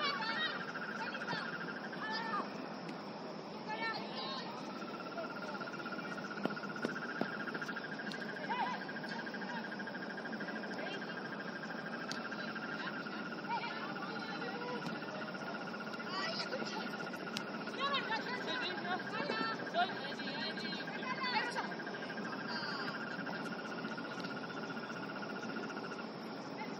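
Young women shout to each other across an outdoor field.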